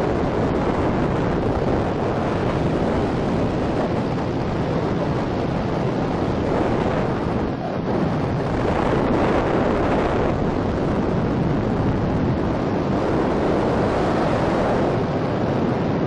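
Wind roars and buffets hard against the microphone in flight.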